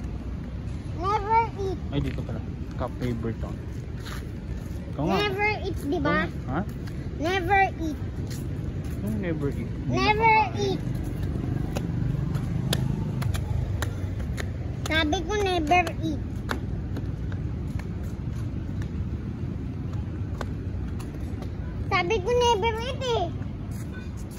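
A young boy calls out excitedly close by.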